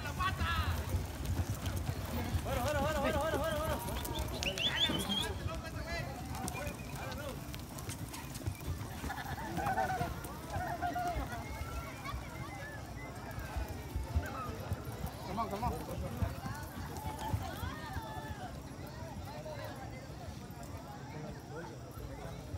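A crowd of people talk and call out outdoors.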